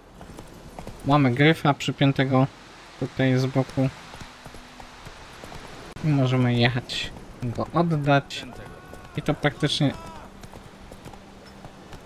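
A horse gallops over a dirt path.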